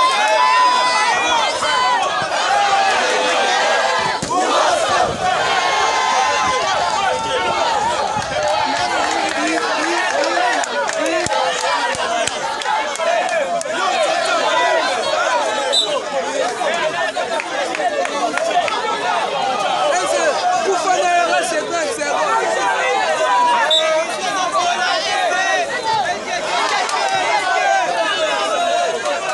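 A large outdoor crowd of men shouts and cheers loudly.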